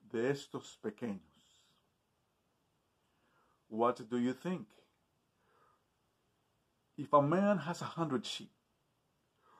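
A man speaks calmly and close up, in short phrases with pauses.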